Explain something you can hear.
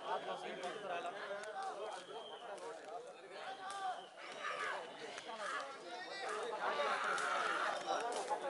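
A crowd of men shout and cheer outdoors.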